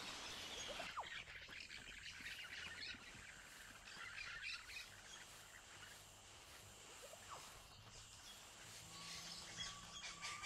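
An animal's paws rustle through tall grass.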